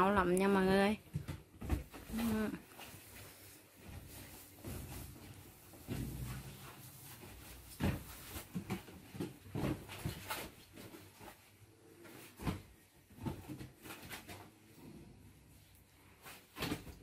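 Monkeys thump and scramble about on a bed.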